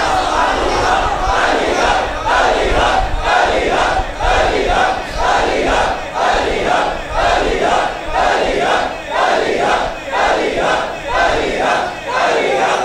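A large crowd of men chants along in rhythm.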